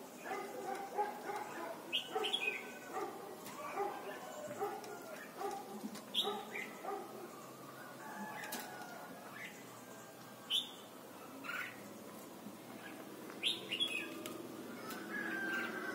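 A caged songbird chirps and whistles in short bursts.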